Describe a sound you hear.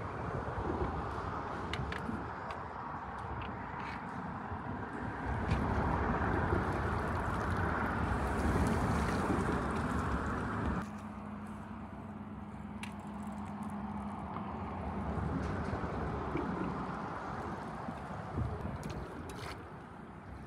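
A net swishes and splashes through the water.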